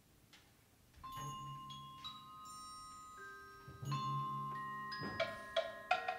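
A school percussion ensemble starts playing ringing mallet instruments and drums.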